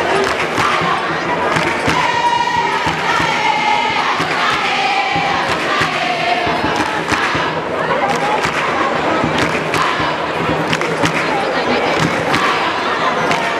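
A large crowd of young women sings and cheers loudly in an open stadium.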